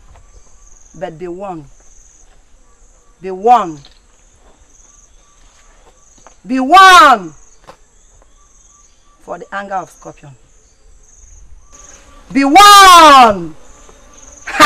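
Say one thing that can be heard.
A woman speaks loudly and with emotion, sometimes crying out.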